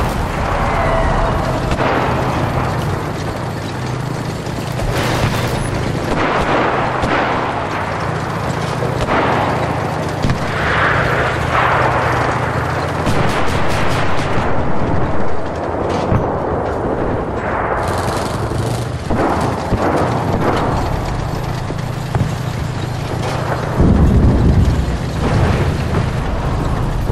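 A heavy engine rumbles low and steadily.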